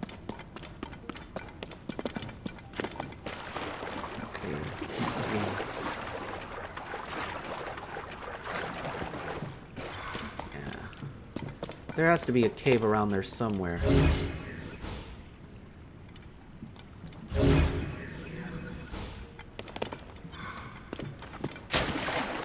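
Footsteps patter quickly over rocky ground.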